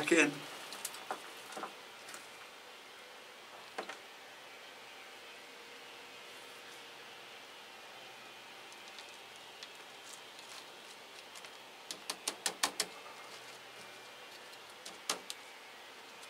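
Potting bark crunches and rattles as fingers press it into a pot.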